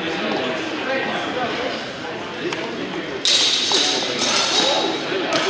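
Several men talk at a distance in a large echoing hall.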